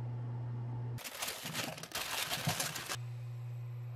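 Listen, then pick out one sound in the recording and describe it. Potato chunks slide and tumble into a pan.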